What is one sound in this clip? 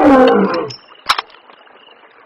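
A rifle bolt clicks as it is worked.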